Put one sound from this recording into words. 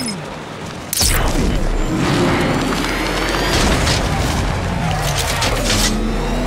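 A powerful car engine roars and revs.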